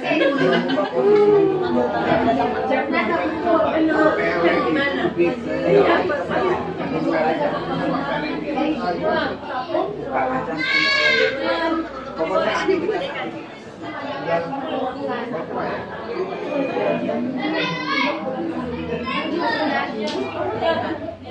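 Several men and women chat and talk over one another indoors.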